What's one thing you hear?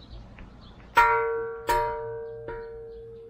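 A shrine bell clangs twice and rings on.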